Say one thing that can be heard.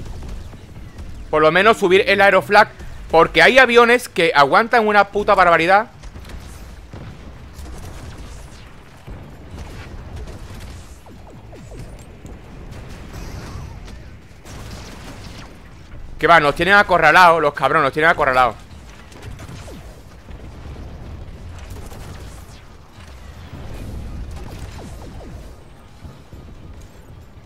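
Laser weapons fire and buzz in a video game.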